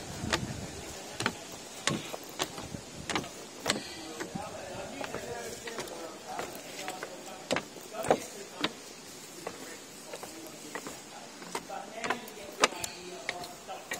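Footsteps thud on wooden steps.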